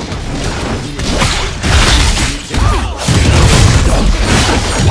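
Game swords and spells clash and burst loudly.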